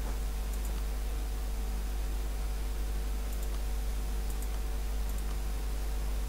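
Soft interface clicks sound as menus open.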